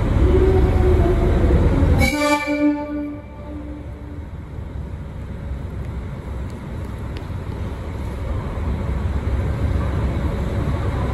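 A train's diesel engine idles with a low, steady rumble.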